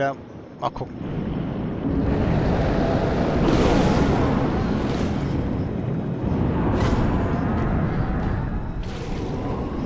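Deep water rumbles and churns.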